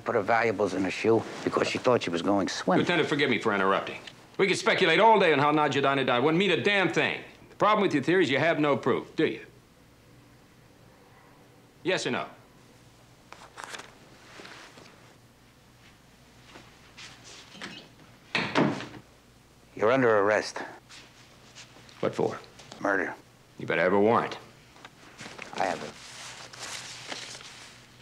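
A middle-aged man speaks up close in a raspy, musing voice.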